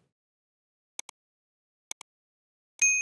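Mouse clicks tap sharply.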